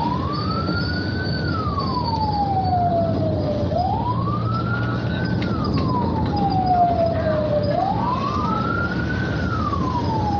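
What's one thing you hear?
Motorcycle engines hum as motorcycles pass by.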